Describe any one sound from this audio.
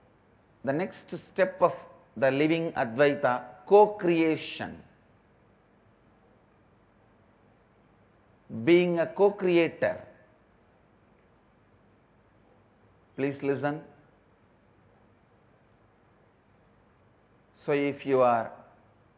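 A man speaks calmly into a microphone, in short phrases with long pauses.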